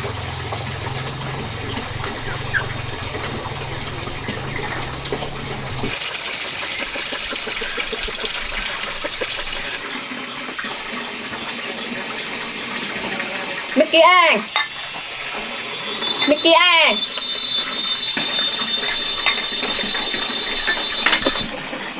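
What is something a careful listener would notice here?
Chopsticks tap lightly against a bowl.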